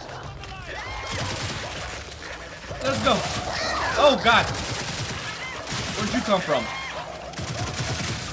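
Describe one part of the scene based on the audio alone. A heavy gun fires in long rapid bursts.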